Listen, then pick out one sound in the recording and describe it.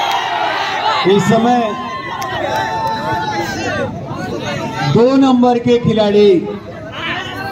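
Men nearby shout loudly to each other.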